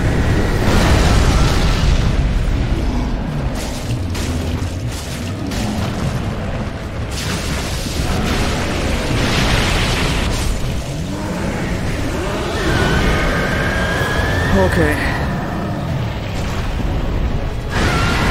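Flames roar in a loud burst.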